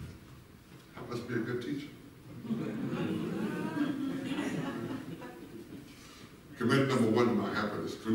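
A man speaks loudly with animation through a microphone in a large echoing hall.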